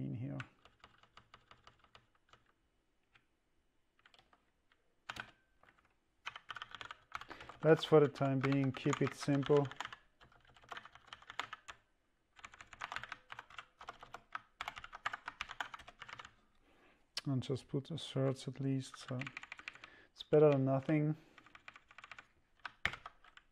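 Keyboard keys clatter in quick bursts.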